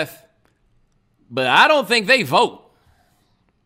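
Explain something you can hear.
A man speaks with animation into a close microphone, his voice rising and falling in a singsong way.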